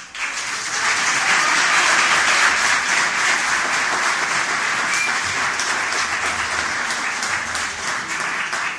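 A large audience chatters loudly in an echoing hall.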